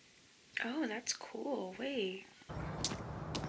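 A young woman speaks briefly and close by.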